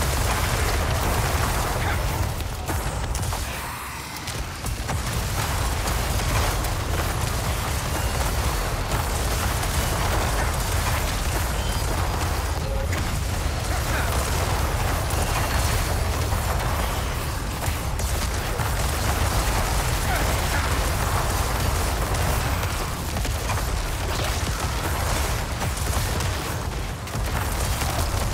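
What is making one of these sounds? Spell blasts crackle and boom in a steady rumbling roar.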